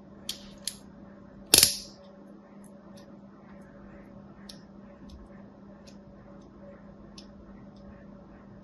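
A needle scratches and pokes softly into a bar of soap, with small crisp ticks.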